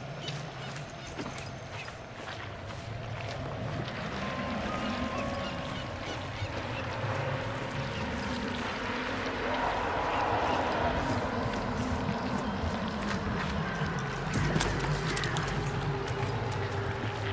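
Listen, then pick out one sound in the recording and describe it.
Footsteps crunch over gravel and dirt.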